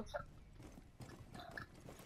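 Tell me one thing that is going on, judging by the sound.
Heavy footsteps thud on a hard floor.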